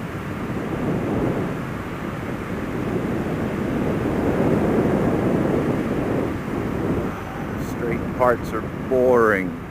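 Tyres hum steadily on smooth asphalt.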